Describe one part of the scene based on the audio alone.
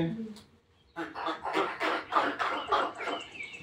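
Girls sob and whimper together.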